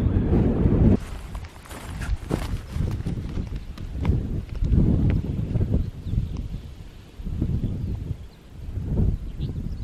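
Footsteps crunch on dry grass and stones, moving away.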